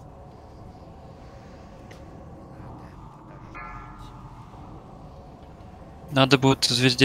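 Spell effects whoosh and clash in a fantasy battle.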